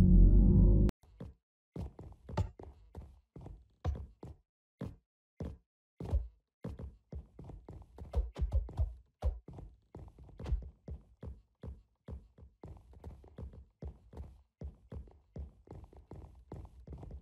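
Footsteps tap quickly and steadily along a hard floor.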